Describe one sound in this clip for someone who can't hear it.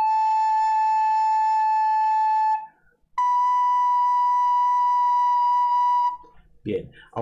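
A recorder plays two long, steady notes, one after another.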